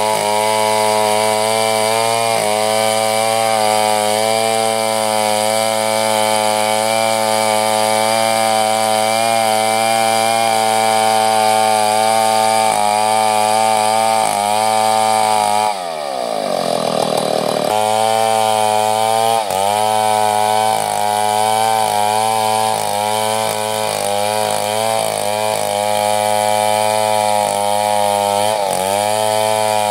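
A chainsaw roars up close, its engine pitch rising and dipping as it cuts into wood.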